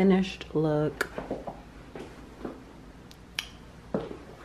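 High heels click on a hard floor.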